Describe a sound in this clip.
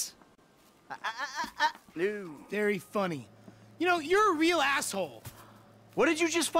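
A young man shouts back with animation.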